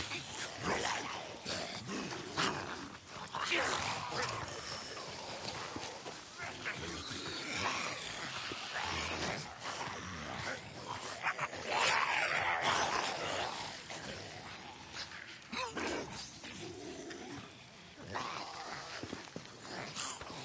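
Footsteps rustle through tall grass and dry brush.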